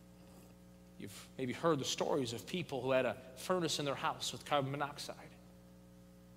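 A man speaks calmly and with emphasis through a microphone.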